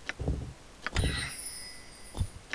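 A soft, shimmering magical chime rings out.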